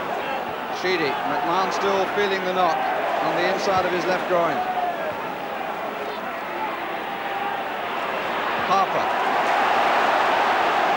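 A large crowd in a stadium murmurs.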